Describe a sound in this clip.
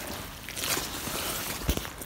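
A spade blade digs into soil.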